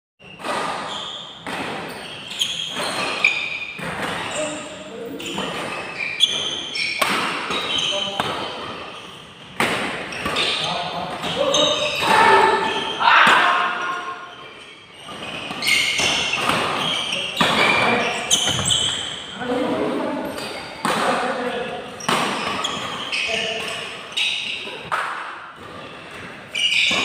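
Sports shoes squeak on a synthetic court floor.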